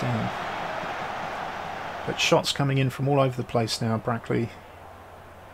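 A stadium crowd murmurs in a steady roar.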